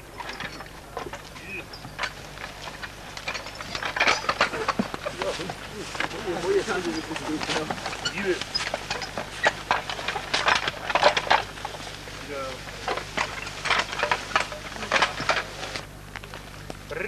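Harness bells jingle as horses move.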